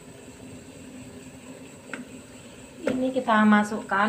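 A block of chocolate is set down in a metal pan with a soft knock.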